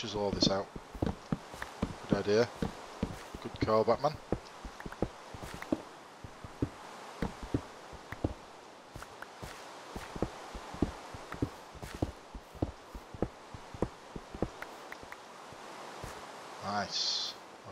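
A pickaxe chips at stone blocks in quick, repeated taps.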